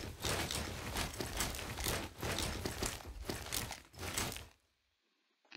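Gunshots rattle in rapid bursts.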